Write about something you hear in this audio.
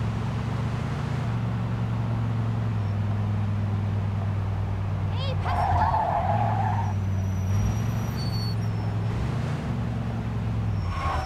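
A car engine hums steadily as it drives along, shifting gears now and then.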